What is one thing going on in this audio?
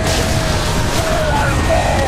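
A fiery explosion roars and rumbles.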